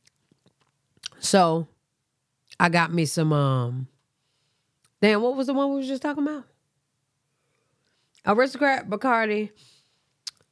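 A young woman speaks close to a microphone in short, animated bursts with pauses between.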